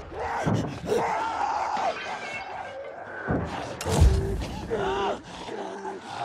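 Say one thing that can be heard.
Heavy blows thud and smack during a close fight.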